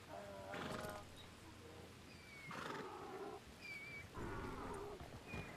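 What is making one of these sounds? A horse's hooves thud on a dirt path.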